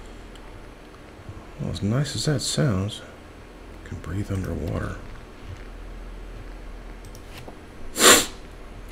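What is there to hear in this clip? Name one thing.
A game menu clicks softly as items are scrolled.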